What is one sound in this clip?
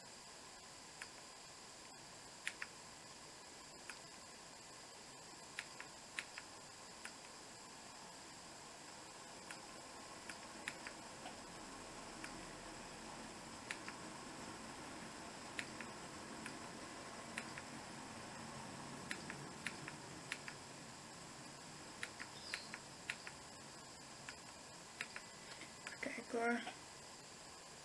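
Small plastic parts click and tap together in the hands.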